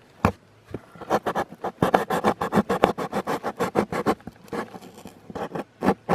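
A finger scrapes and rubs against cardboard.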